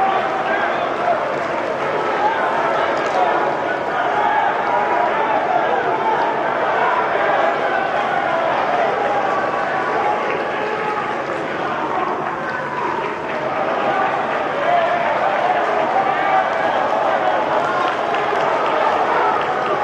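A crowd of young men chatters loudly in a large echoing hall.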